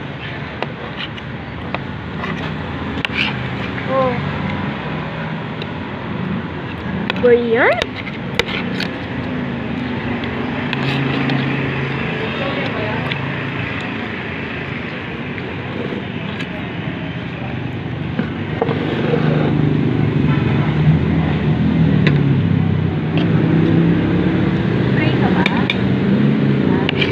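A metal spoon clinks against a plate.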